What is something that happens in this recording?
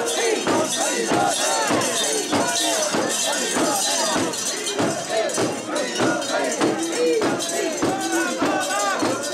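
A crowd of men chant loudly in rhythm, close by.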